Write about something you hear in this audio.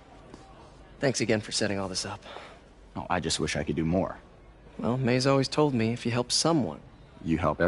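A young man speaks warmly and casually.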